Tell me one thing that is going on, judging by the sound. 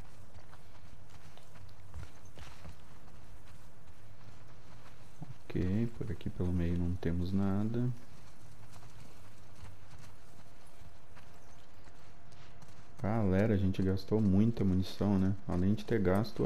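Footsteps walk softly over grass and concrete.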